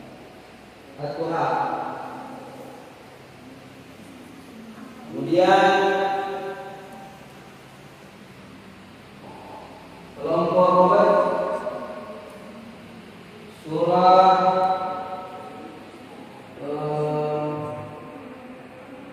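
Young boys chant in unison, in short sung phrases with pauses between, in a large echoing hall.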